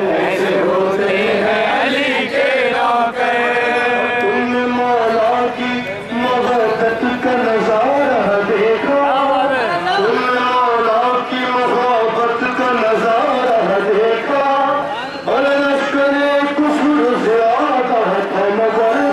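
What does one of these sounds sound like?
A young man sings loudly into a microphone over a loudspeaker.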